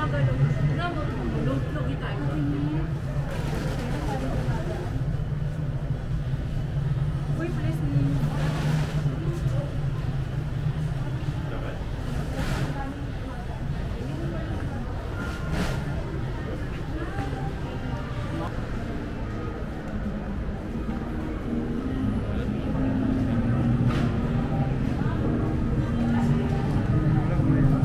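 A crowd of men and women chatters all around in a large echoing hall.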